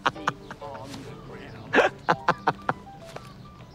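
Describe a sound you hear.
A man laughs heartily nearby.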